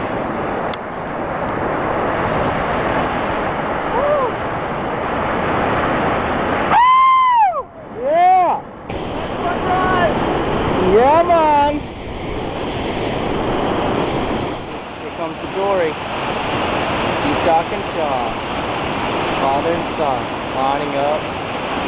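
Whitewater rapids roar loudly and steadily.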